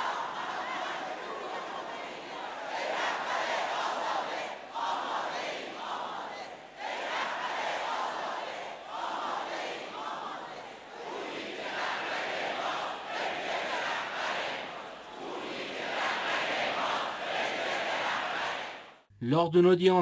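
A large crowd chants in rhythmic waves in a big echoing hall.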